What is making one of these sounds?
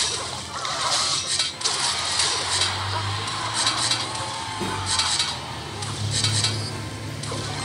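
Game battle sound effects clash and burst in quick bursts.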